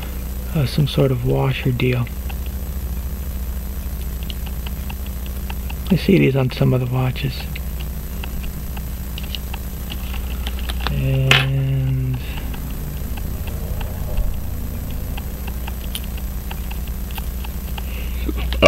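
Metal tweezers tap and click lightly against small watch parts.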